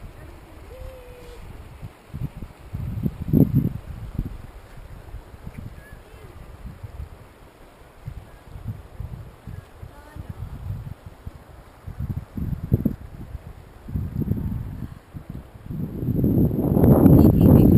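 A shallow stream ripples and gurgles over stones.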